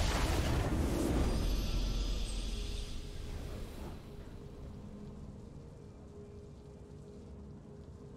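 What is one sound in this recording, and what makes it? A triumphant victory fanfare swells and fades.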